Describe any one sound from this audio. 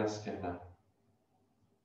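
A man speaks calmly and softly close to a microphone.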